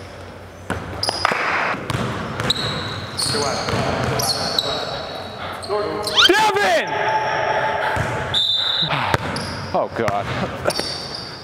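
Sneakers squeak sharply on a hard court floor in a large echoing gym.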